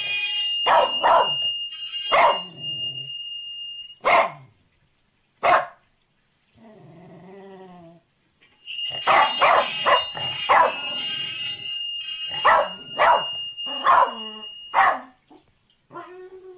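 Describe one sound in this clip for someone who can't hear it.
A small dog barks and yelps in sharp bursts close by.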